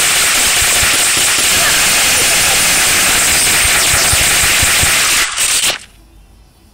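Rapid gunfire crackles loudly, then cuts off.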